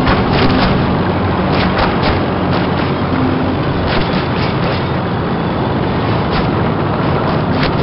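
Tank tracks clatter and squeak.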